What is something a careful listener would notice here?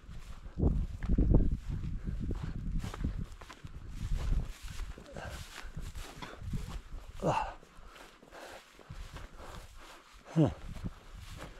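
Wind rumbles and buffets across an open hillside.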